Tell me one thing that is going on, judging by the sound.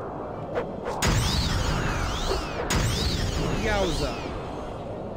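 A magic spell bursts with a shimmering, sweeping whoosh.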